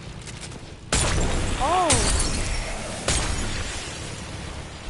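An explosion bursts with a loud boom and rumbles away.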